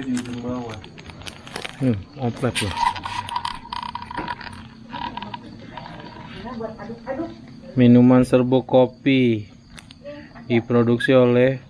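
A plastic sachet crinkles in a hand.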